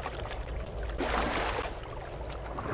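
Water splashes loudly as someone plunges in.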